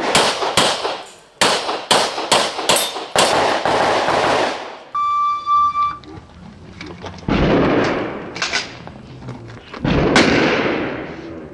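Pistol shots ring out in quick bursts and echo outdoors.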